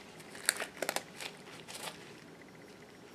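A latex glove crinkles and rustles as it is handled.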